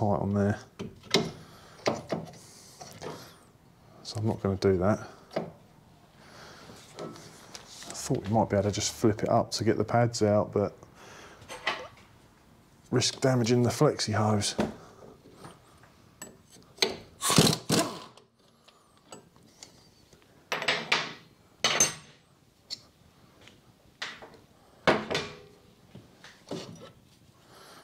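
Metal tools clink and clatter.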